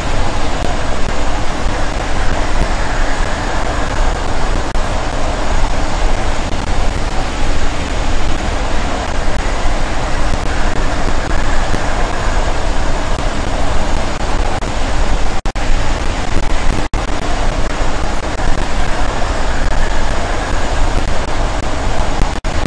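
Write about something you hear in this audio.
An electric train rumbles steadily along the rails at speed.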